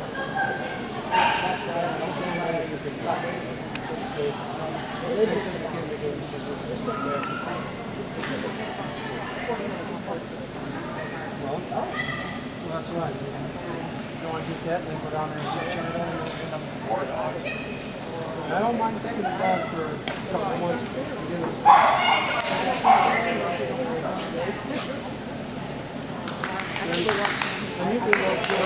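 A woman calls out commands to a dog in a large echoing hall.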